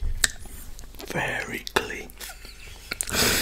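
A man speaks softly close to a microphone.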